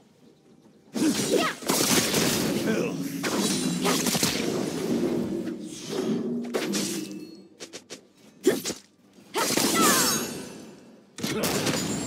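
Magic blasts and sword strikes clash in a rapid fight.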